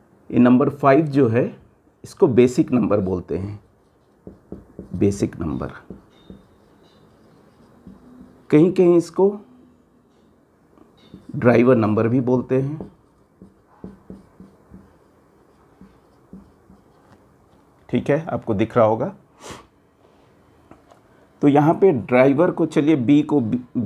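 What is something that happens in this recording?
A man speaks calmly and clearly up close, explaining in short bursts with pauses.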